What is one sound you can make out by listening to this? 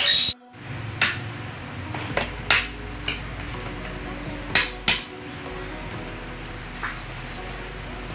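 A metal tool clicks and knocks against a window frame.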